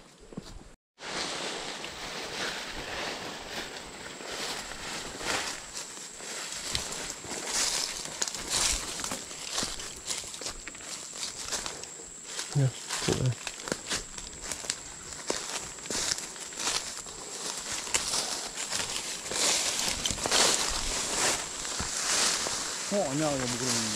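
Leafy branches and ferns brush and swish against bodies.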